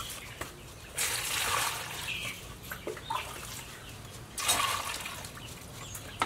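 Water pours from a bowl and splashes.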